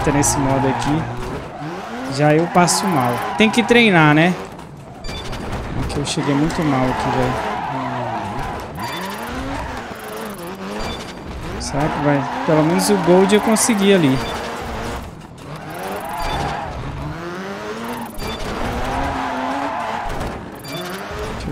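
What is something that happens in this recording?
Boxes crash and scatter as a car smashes through them.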